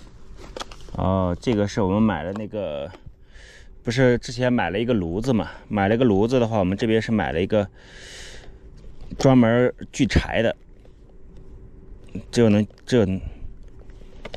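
A man speaks calmly close by.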